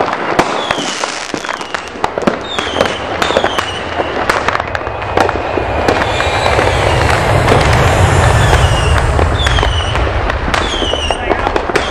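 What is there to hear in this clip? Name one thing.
Rockets whistle as they climb.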